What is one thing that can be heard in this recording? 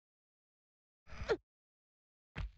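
A young woman grunts as she climbs.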